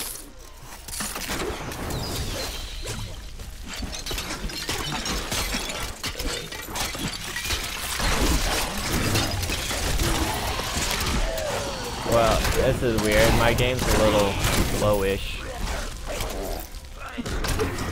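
Spells crackle and explode in a fierce game battle.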